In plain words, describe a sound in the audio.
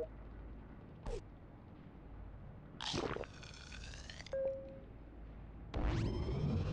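Short electronic game sound effects chime and whoosh.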